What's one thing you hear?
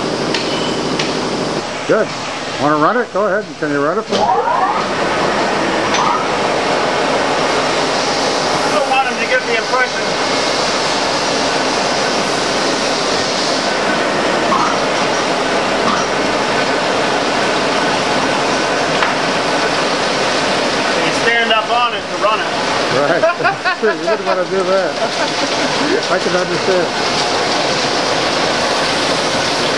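Heavy machinery runs with a loud, steady clattering roar.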